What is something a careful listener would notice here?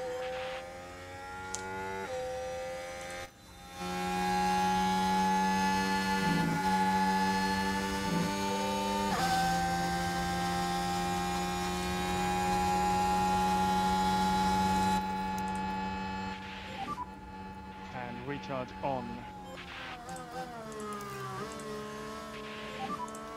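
A racing car engine whines loudly at high revs, shifting pitch with gear changes.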